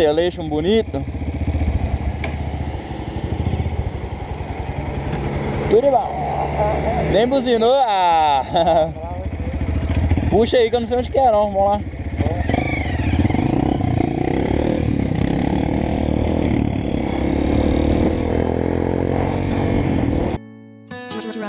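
A motorcycle engine hums and revs close by.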